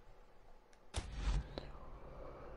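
A game menu makes a short whooshing confirm sound.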